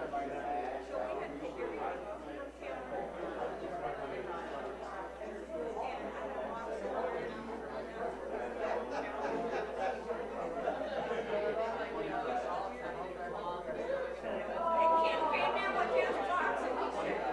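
Men and women chat at once in a room that echoes a little.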